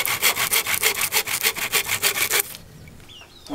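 A hand saw cuts through bamboo with quick, rhythmic strokes.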